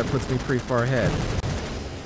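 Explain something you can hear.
Rocket boosters hiss and whoosh.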